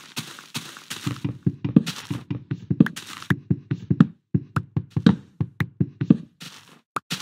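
Dull knocks strike wood again and again.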